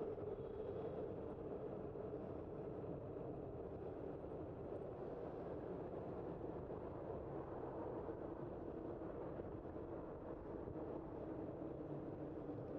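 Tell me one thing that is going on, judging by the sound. Wind rumbles steadily across the microphone.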